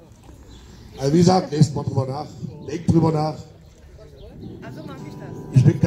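A man sings loudly into a microphone through a loudspeaker outdoors.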